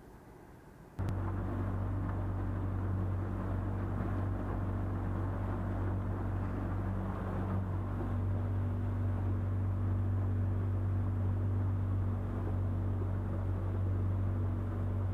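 A boat motor drones loudly and steadily.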